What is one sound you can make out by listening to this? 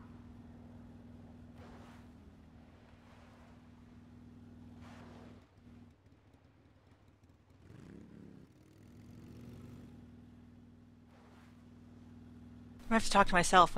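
A motorcycle engine hums nearby.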